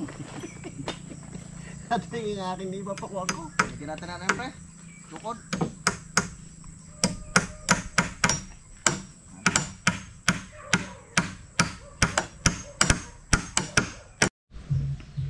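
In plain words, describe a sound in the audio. Hammers knock sharply on wood in quick, uneven blows.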